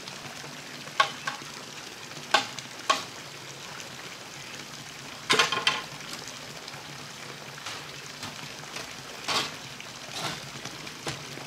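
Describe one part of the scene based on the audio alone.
Wooden planks knock and clatter against each other.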